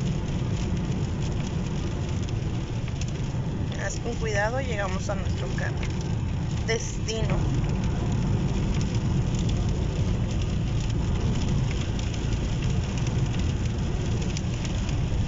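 A car engine and tyres rumble low and steady on a wet road.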